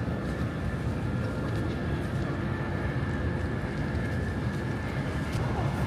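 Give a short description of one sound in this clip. A crowd of adults chatters quietly nearby.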